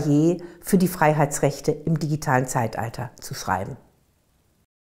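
An older woman speaks calmly and clearly into a close microphone.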